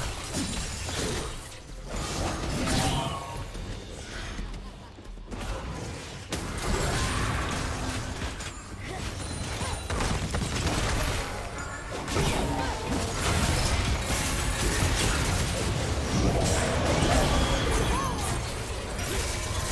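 Video game spell effects whoosh, crackle and burst during a fight.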